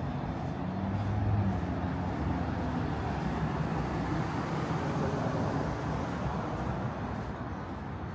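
Traffic hums steadily on a nearby street outdoors.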